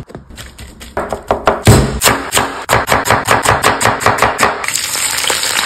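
A knife chops rapidly on a wooden board.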